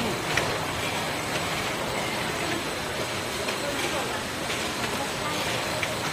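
Glass jars clink against each other on a moving conveyor.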